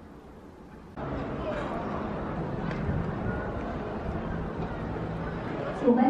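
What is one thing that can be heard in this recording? Men and women chatter faintly in an open outdoor space.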